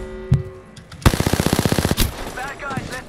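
A rapid burst of gunfire rattles close by.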